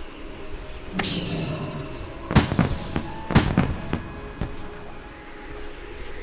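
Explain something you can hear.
Fireworks pop and crackle overhead.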